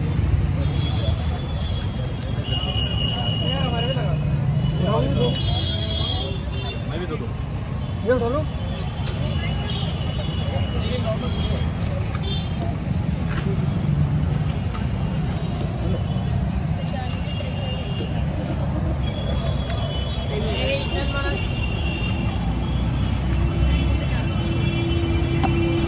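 Street traffic rumbles steadily outdoors.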